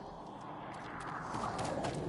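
A sword slashes swiftly through the air.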